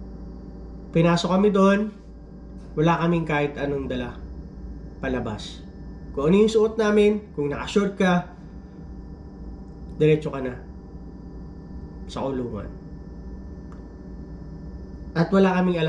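A man speaks calmly, close to the microphone, in short bursts with pauses.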